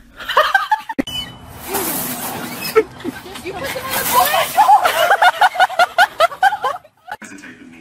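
Young women shriek and laugh loudly outdoors.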